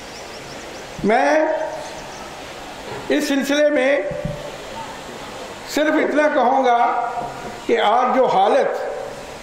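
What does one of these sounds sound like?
An older man speaks with feeling into a microphone, his voice ringing through loudspeakers outdoors.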